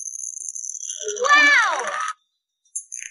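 Cartoon balls burst and scatter.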